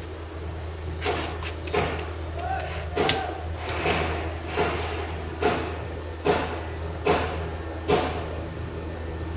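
A man speaks close by in short bursts.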